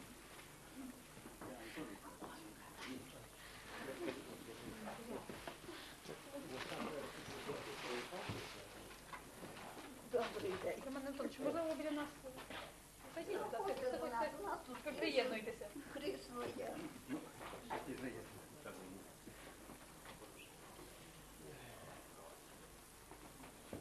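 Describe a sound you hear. An elderly man speaks nearby.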